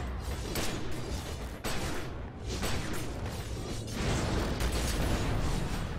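Fiery magic blasts roar and crackle.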